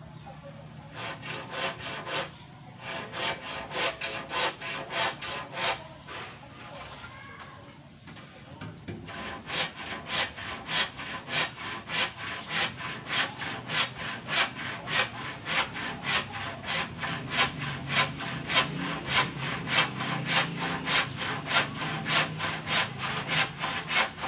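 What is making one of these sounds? A tool scrapes and taps rhythmically against a concrete block.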